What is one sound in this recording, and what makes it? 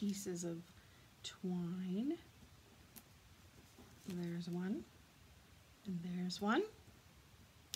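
A woman speaks calmly and close to a microphone, in short phrases.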